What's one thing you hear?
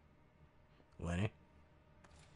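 A heavy lever clunks into place.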